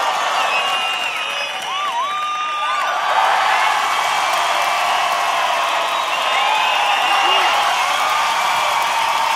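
Members of an audience whistle loudly.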